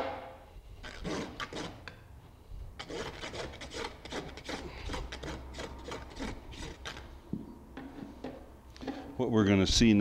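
A rasp scrapes back and forth across a hoof.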